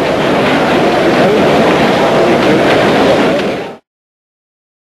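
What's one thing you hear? A large crowd cheers and roars loudly in a big echoing hall.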